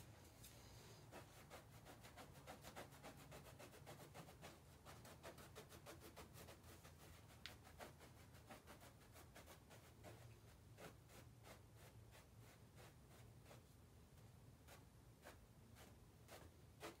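A brush taps and dabs on a board with quick, light clicks.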